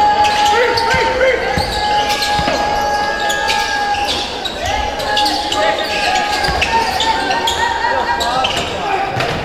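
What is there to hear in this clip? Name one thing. A crowd of spectators murmurs in the background.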